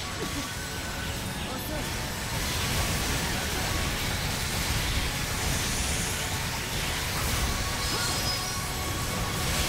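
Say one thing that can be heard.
Magical energy blasts whoosh and crackle in a fight.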